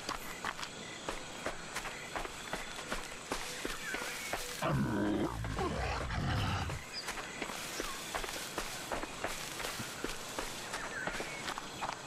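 Footsteps crunch steadily through leafy undergrowth.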